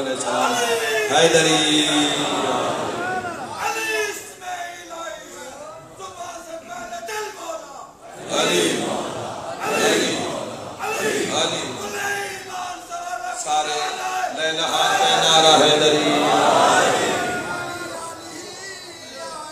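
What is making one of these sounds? A man recites with passion through a loudspeaker in a large echoing hall.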